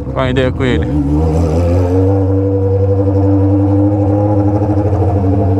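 An inline-four sport motorcycle with a straight-pipe exhaust cruises at steady low revs.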